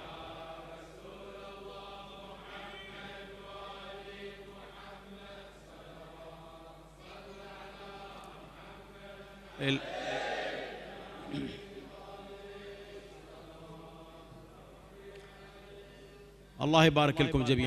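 A crowd murmurs and chatters.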